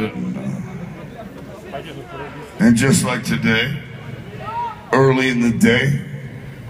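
A rock band plays through large loudspeakers outdoors.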